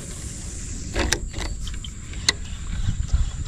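A fishing reel clicks as its handle is turned.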